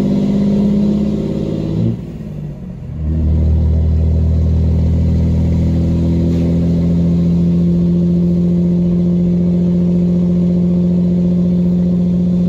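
A truck engine hums steadily, heard from inside the cab.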